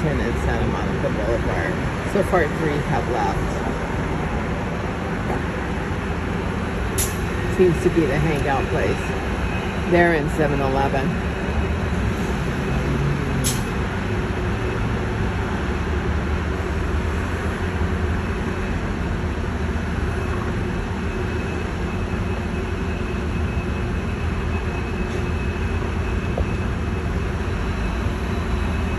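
Street traffic rumbles steadily below.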